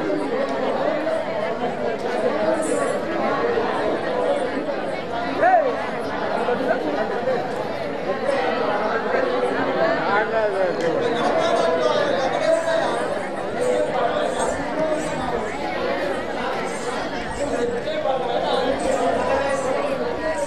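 A man sings and declaims loudly through a loudspeaker.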